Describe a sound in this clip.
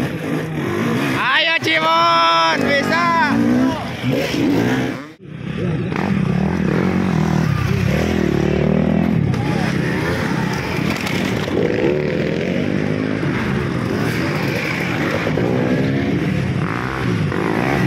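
Dirt bike engines rev and roar nearby, rising and falling in pitch.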